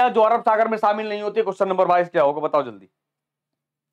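A man speaks clearly and with animation into a close microphone.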